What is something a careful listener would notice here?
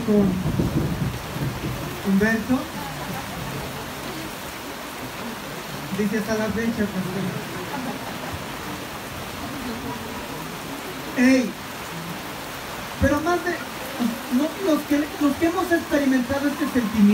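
A young man speaks with animation into a microphone over loudspeakers, in an echoing room.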